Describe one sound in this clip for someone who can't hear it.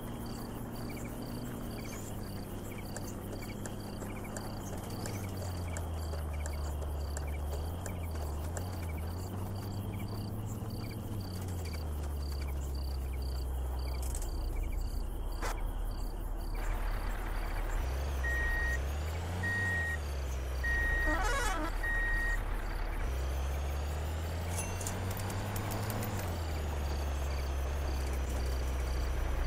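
A vehicle engine hums and rises and falls in pitch as it drives over rough ground.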